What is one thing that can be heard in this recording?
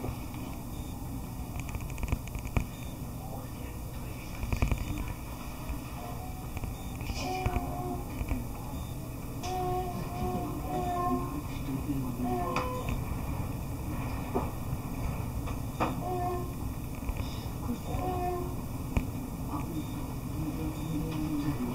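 Wind blows steadily outdoors, rustling dry grass.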